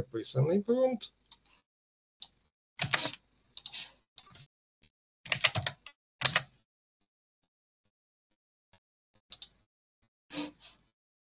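A woman speaks calmly over an online call, in short bursts with pauses.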